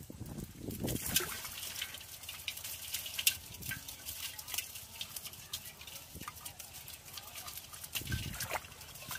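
Small fish splash and flap in shallow water inside a pot.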